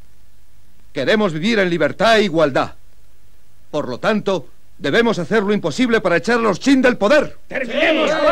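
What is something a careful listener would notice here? A young man speaks firmly and loudly.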